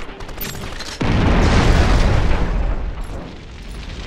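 A vehicle explodes with a deep boom.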